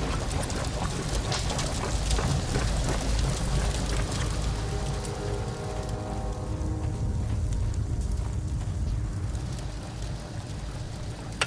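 An elevator rumbles steadily as it moves down.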